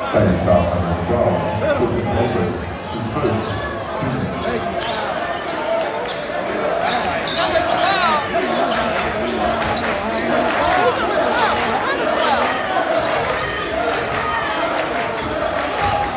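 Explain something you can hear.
A large crowd cheers and chatters in an echoing gym.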